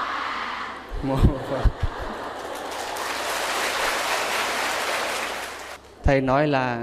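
A large crowd applauds.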